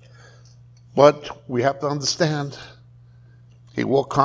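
A middle-aged man speaks calmly through a clip-on microphone.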